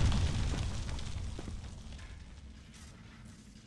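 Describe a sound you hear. Debris clatters and crashes onto a hard floor.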